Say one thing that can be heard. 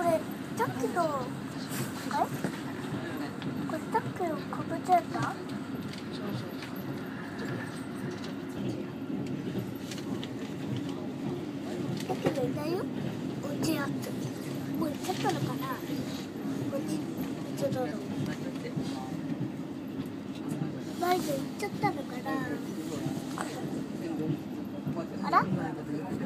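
Wheels click and clatter over rail joints.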